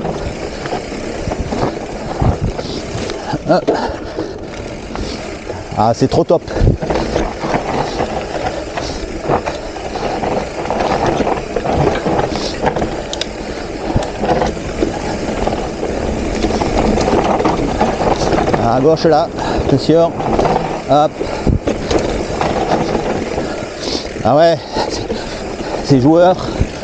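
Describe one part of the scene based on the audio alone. Bicycle tyres rumble and crunch over a bumpy dirt trail.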